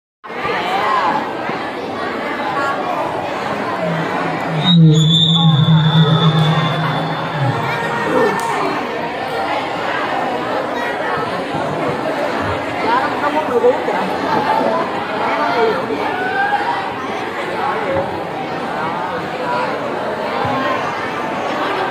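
A group of young girls chatter and talk over one another close by.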